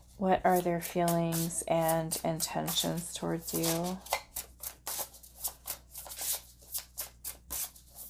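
Playing cards riffle and flutter as they are shuffled.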